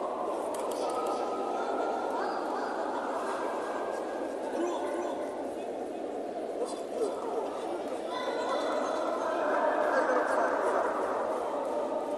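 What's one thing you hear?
A crowd cheers and chatters steadily in a large echoing hall.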